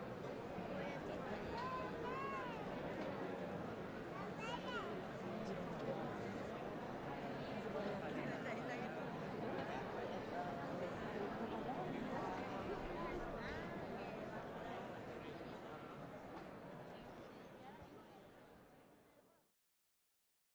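A large crowd murmurs and chatters outdoors, fading away at the end.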